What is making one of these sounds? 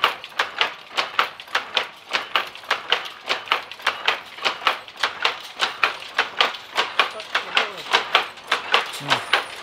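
A loom clatters with fast, steady rhythmic clacks.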